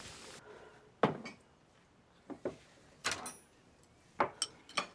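Chopsticks clink against dishes.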